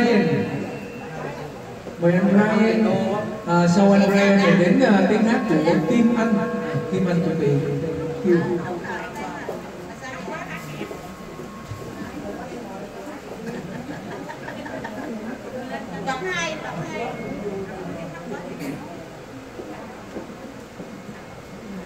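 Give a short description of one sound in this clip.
An electronic keyboard plays a melody through loudspeakers.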